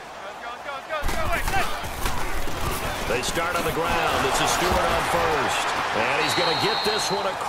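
A large stadium crowd roars loudly.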